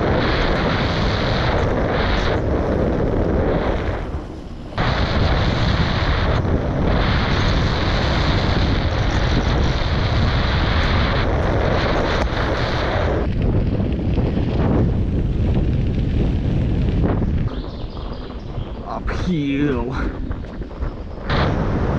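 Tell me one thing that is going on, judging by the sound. Bicycle tyres crunch and rumble over a dirt trail.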